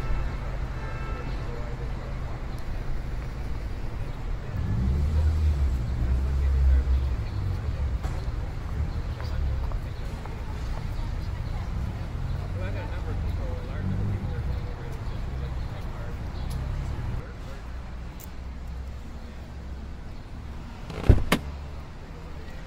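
A car engine hums as a vehicle drives slowly along a street.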